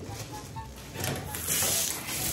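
Water sprays from a shower head into a bathtub.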